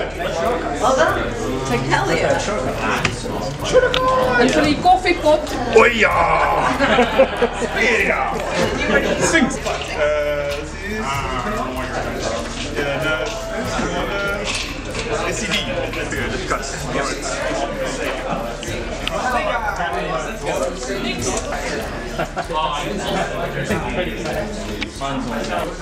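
A crowd of people chatters in a busy room.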